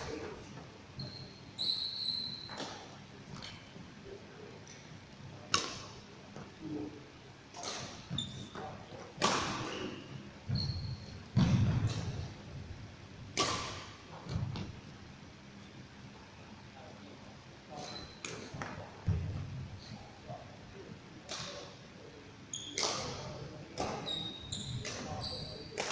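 Sneakers squeak on a wooden court floor.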